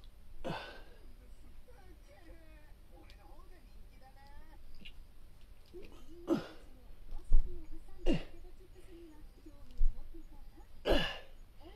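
A man exhales sharply with effort, close by.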